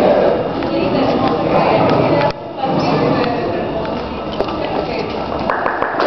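An audience murmurs and chatters nearby.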